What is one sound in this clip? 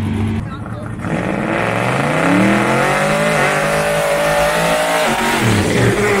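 A car engine revs hard, its roar rising in pitch.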